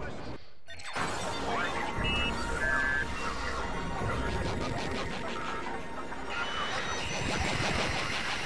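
Electronic beeps and chirps sound.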